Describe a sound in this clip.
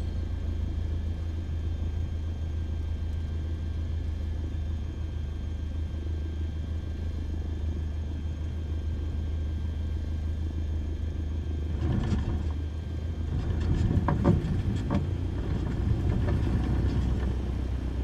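A single-engine propeller plane's engine drones at takeoff power.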